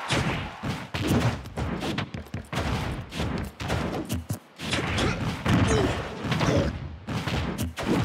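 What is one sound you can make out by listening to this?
Fighting blows land with sharp, punchy thwacks.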